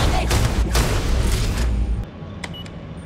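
A rifle fires several rapid shots in a loud burst.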